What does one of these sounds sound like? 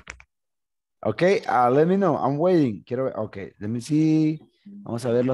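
A young man speaks with animation through a microphone on an online call.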